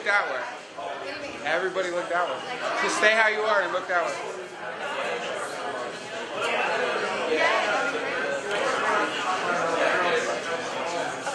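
Young women chatter and laugh close by.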